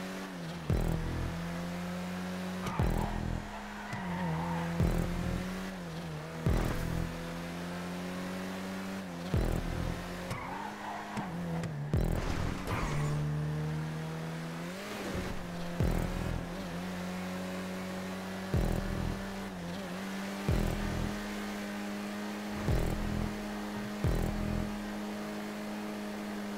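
A car engine roars steadily at high revs, dropping and climbing in pitch as it shifts gears.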